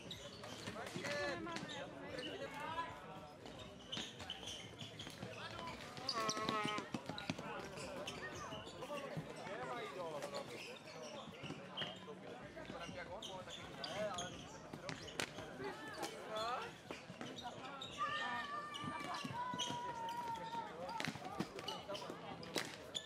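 Men shout and call to each other outdoors.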